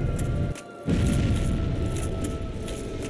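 A magical blast bursts with a loud roar.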